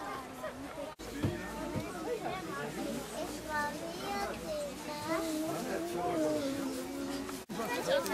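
Children talk and call out excitedly.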